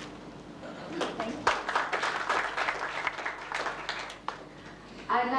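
A small audience applauds.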